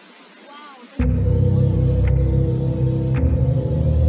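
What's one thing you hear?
Music plays.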